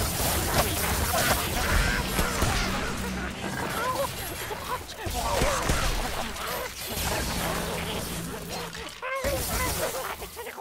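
Weapons clash and thud against enemies.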